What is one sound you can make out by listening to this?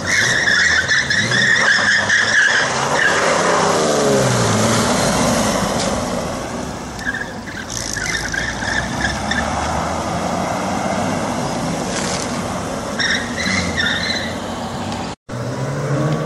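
A classic car engine revs and roars as the car drives past.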